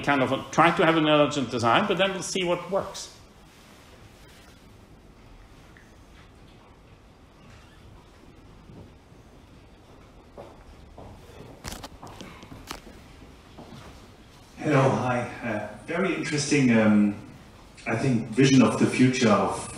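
A middle-aged man speaks calmly.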